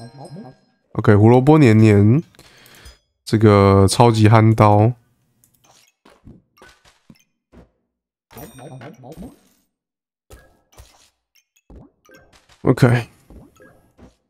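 A young man talks animatedly into a microphone.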